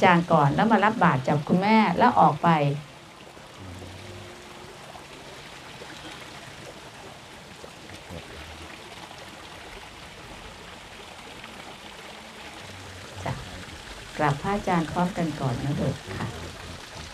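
A man chants nearby in a steady, drawn-out voice.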